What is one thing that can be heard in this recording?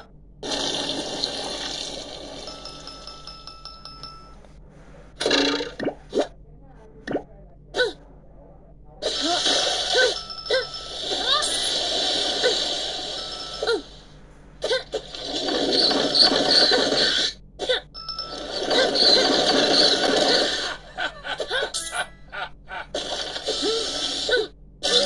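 Game sound effects and music play through a small phone speaker.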